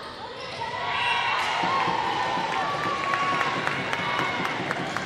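A crowd cheers and claps in a large echoing hall.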